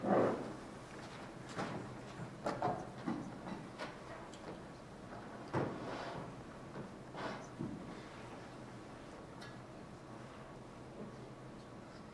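Musicians shift in their seats and softly knock their instruments in a large echoing hall.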